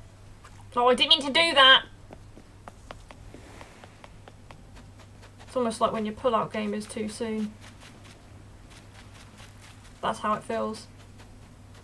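A young woman speaks with animation through a microphone, in short bursts.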